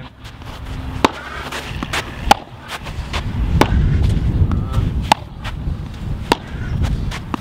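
A paddle strikes a ball with sharp pops, again and again.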